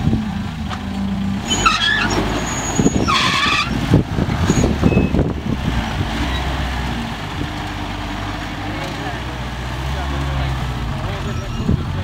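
An off-road truck's engine rumbles and revs as it climbs over rocks.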